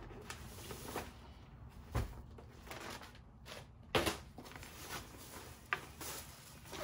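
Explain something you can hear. Soft thumps and knocks sound now and then.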